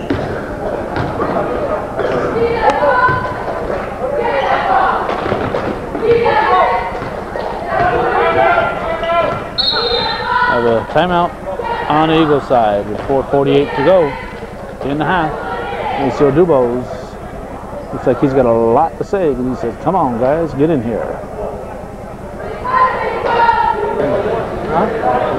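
Spectators talk and call out in an echoing gym.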